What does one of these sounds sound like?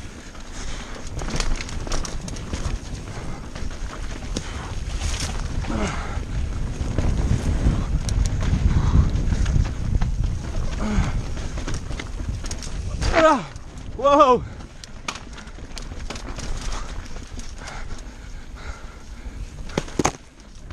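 Wind buffets loudly against a microphone.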